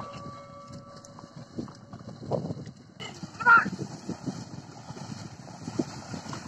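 A pair of bullocks splash and squelch through wet mud and water.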